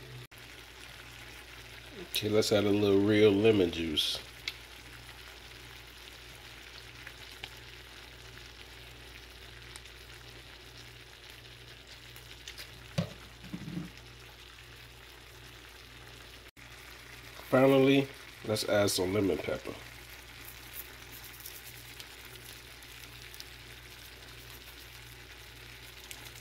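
Shrimp sizzle gently in a frying pan.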